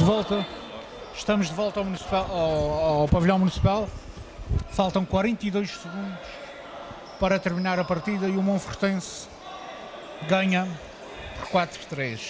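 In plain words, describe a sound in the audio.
Players' shoes squeak on a wooden court.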